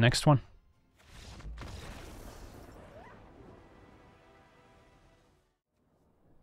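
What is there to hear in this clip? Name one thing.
A triumphant musical flourish swells and slowly fades.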